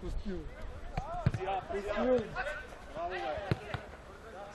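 A football is kicked with a thud.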